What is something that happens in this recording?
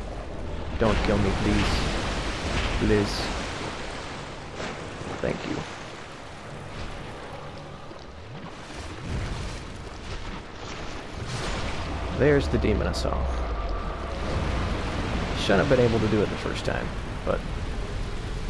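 A huge monster lets out deep, groaning roars.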